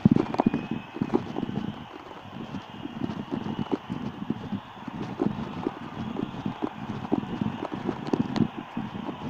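Footsteps crunch steadily along a paved path.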